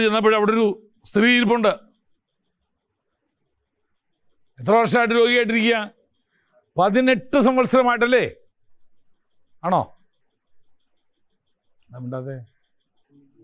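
A middle-aged man speaks calmly through a microphone, in short phrases with pauses.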